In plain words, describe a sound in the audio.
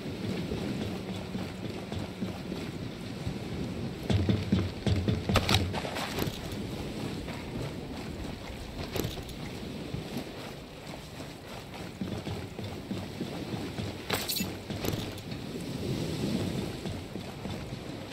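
Footsteps thud on metal walkways and dirt as a soldier runs.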